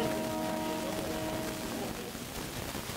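A trumpet plays a held melody line.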